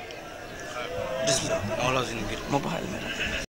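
An older man talks quietly near a microphone.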